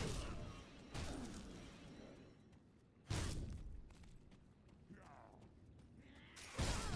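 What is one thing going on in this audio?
Magic spells burst with loud whooshing blasts, again and again.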